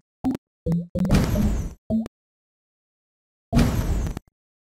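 Game chimes and pops sound as tiles clear.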